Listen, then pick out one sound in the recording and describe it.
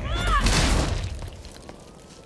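A burst of flames roars loudly and dies away.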